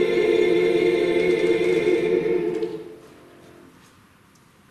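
A choir sings a held final chord that rings out and fades in a reverberant hall.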